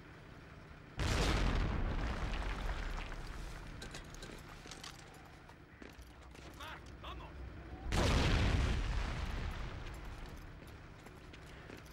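A grenade explodes with a loud boom that slowly rumbles away.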